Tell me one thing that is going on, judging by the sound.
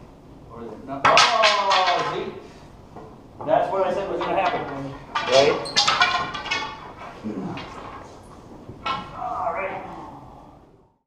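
A man gives instructions loudly in a large echoing room.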